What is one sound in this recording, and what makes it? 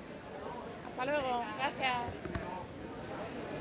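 A young woman exclaims excitedly nearby.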